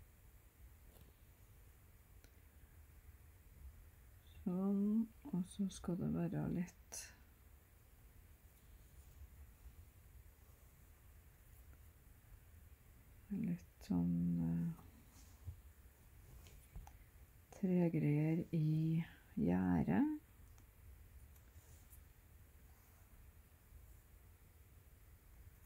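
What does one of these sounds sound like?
Cloth rustles softly as it is handled and turned.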